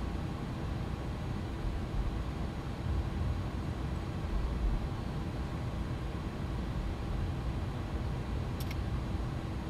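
Jet engines rumble low and steadily as an airliner rolls along a runway.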